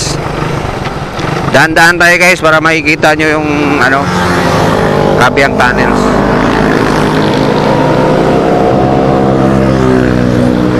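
Wind rushes past as the motorcycle rides.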